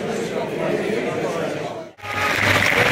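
A crowd of men chatter.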